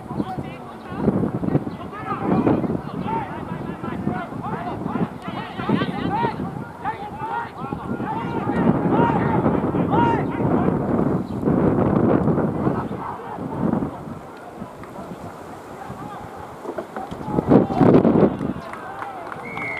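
Spectators nearby cheer and shout.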